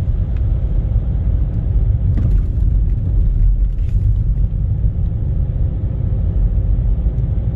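Tyres crunch and hiss on packed snow.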